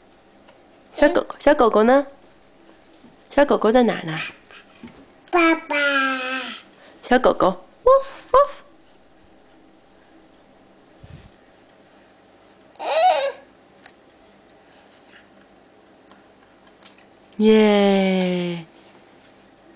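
A toddler girl babbles and chatters close by in short bursts.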